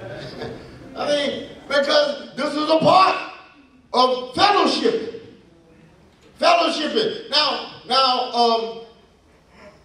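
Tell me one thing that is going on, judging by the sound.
A man speaks with animation into a microphone in an echoing hall.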